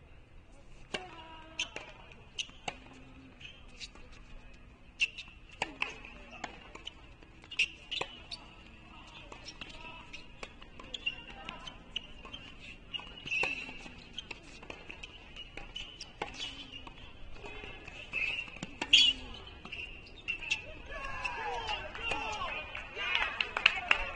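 Tennis shoes squeak on the hard court.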